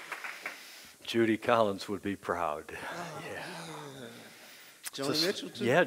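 An elderly man speaks calmly through a microphone in a large room.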